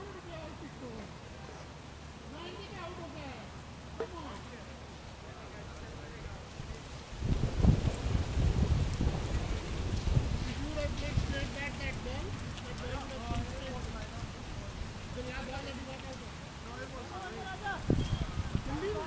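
Men talk and call out across an open field, some way off.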